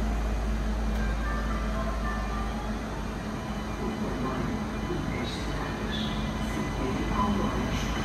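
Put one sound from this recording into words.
Train brakes squeal softly.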